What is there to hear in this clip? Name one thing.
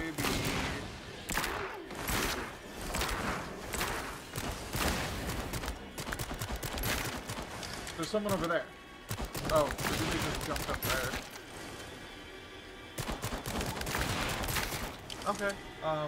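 A gun fires repeatedly in sharp bursts.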